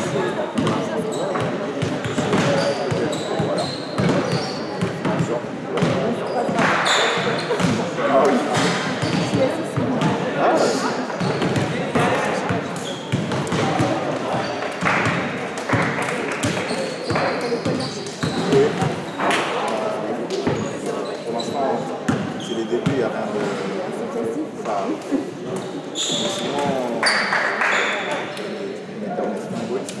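Young men and women chatter and call out in the echoing hall.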